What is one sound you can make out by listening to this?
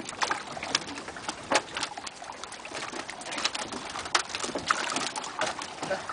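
Live fish splash and flap in a tub of water.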